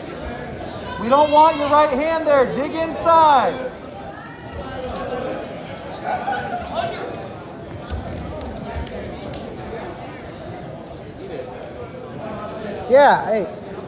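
Young people call out encouragement in loud, high voices.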